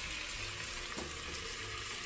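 A metal lid clinks onto a pan.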